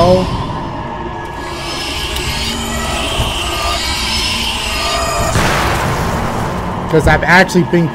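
Magic energy crackles and hums.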